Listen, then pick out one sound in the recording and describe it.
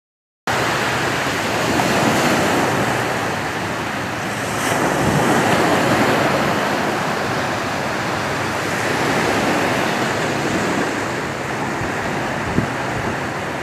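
Waves wash up onto a beach and draw back in slow surges.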